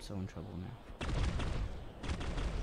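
Game weapons fire with loud blasts.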